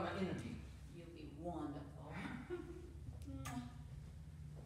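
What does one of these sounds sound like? An elderly woman speaks softly.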